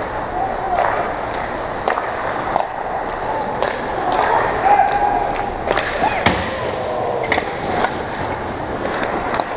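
Sounds echo through a large indoor rink.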